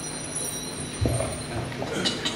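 A wind instrument plays through loudspeakers in a large hall.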